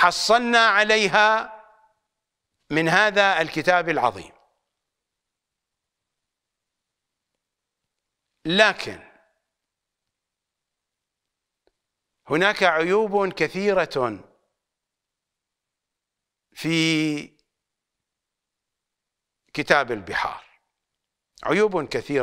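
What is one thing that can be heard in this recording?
An older man speaks with animation into a close microphone, in bursts with long pauses.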